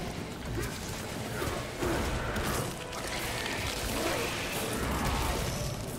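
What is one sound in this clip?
Blades clash and slam in close combat.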